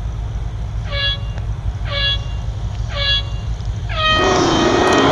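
Countdown beeps sound at even intervals, ending with a higher beep.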